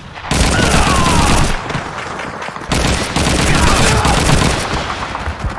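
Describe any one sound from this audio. A submachine gun fires rapid bursts in a closed, echoing room.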